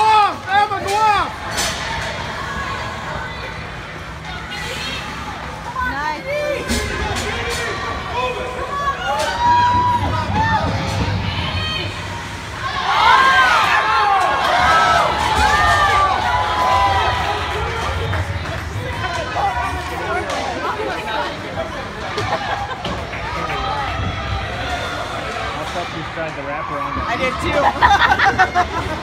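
A crowd of spectators shouts and cheers in a large echoing rink.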